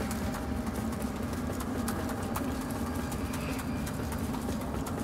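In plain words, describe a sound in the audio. Footsteps splash through shallow water in an echoing tunnel.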